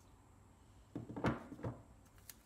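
A battery pack knocks down onto a hard table.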